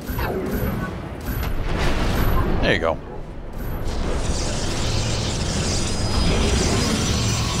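Electronic game sound effects hum and whoosh.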